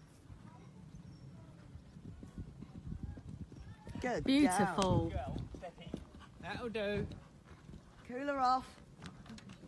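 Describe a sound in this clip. A horse canters on grass, its hooves thudding.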